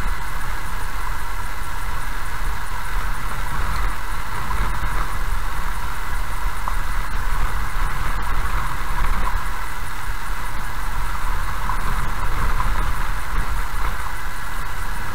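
A car engine hums steadily as the car drives slowly.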